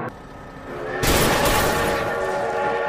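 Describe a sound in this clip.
A train crashes into vehicles with loud metallic bangs.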